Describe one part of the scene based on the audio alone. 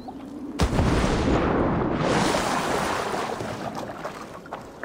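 Water sloshes as someone swims.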